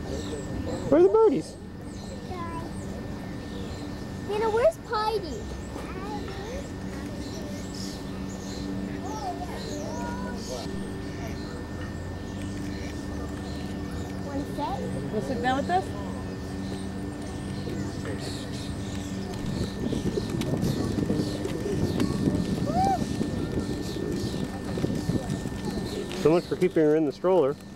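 A toddler babbles and squeals close by.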